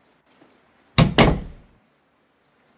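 A door swings open with a short creak.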